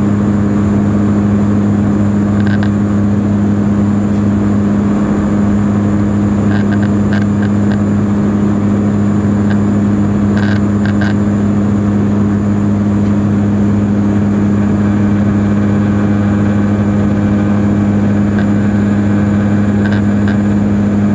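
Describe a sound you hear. A propeller engine drones loudly and steadily with a deep hum.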